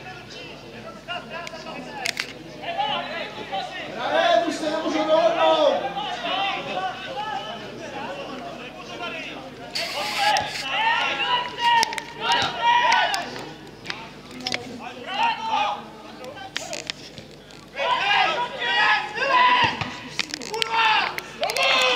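Footballers shout to each other on an open field.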